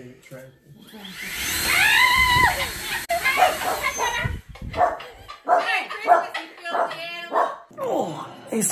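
An elderly woman shrieks and laughs loudly nearby.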